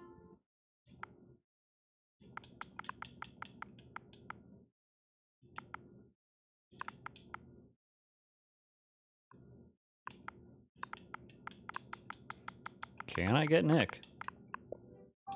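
Soft electronic clicks tick quickly, one after another, in short bursts.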